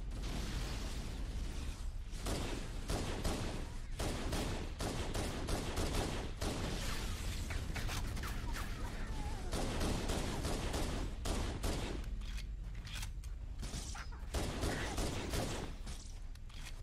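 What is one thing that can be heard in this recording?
Rapid gunfire bursts loudly in a video game.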